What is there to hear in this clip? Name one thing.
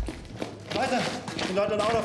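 Boots step on a hard floor.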